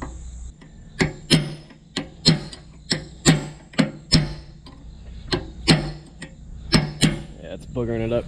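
A metal ratchet clicks sharply, again and again, as it is worked by hand.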